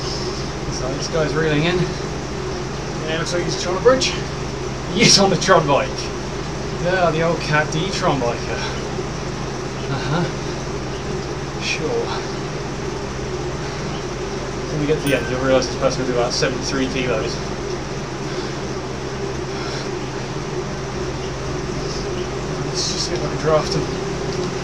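A young man talks calmly, close to a microphone.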